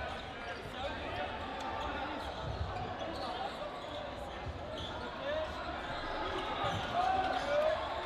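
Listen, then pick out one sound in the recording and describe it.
Young people talk and call out to one another in a large echoing hall.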